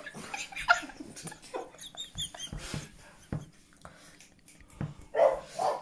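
A middle-aged woman laughs.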